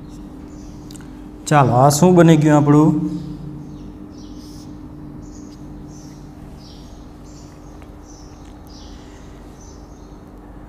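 A marker squeaks in short strokes on a whiteboard.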